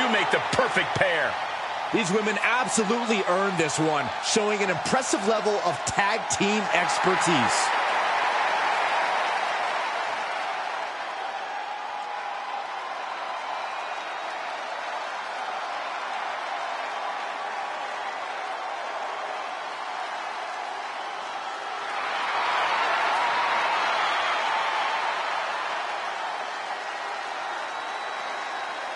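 A large crowd cheers and roars steadily in a big arena, swelling louder for a few seconds.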